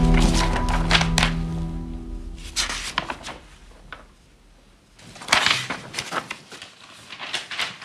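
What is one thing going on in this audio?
Paper rustles and crackles close by.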